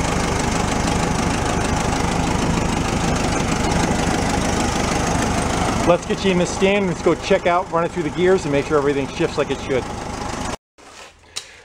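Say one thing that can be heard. An engine idles with a steady rumble.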